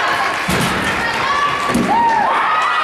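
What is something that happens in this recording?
A gymnast lands on a mat with a thud.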